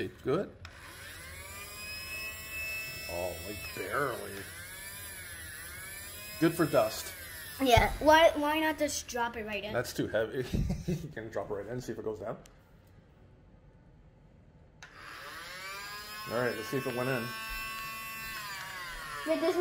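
A toy vacuum cleaner plays a whirring sound that rises and falls in pitch.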